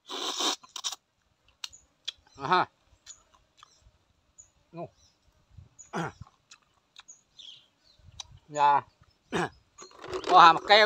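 A man eats noisily, slurping and smacking his lips close to a microphone.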